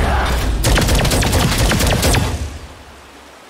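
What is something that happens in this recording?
A fiery magic beam blasts with crackling bursts.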